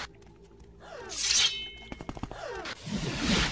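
A magic spell whooshes and crackles as it is cast.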